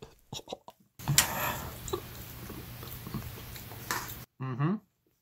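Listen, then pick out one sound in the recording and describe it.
A young man crunches food as he chews.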